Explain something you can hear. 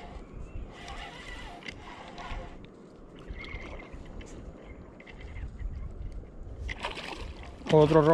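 A fishing reel clicks as it is wound in.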